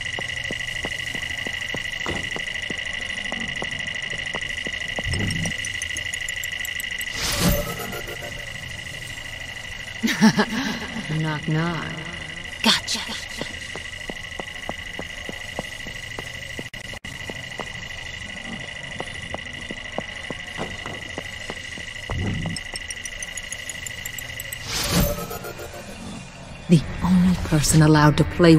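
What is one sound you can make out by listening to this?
Footsteps run quickly across a hard metal floor.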